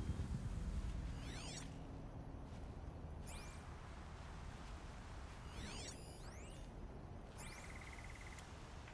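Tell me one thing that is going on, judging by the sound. Electronic scanning sounds sweep up and down in a high chime.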